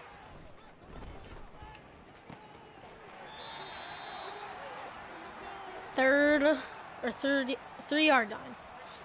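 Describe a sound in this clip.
A stadium crowd cheers and roars.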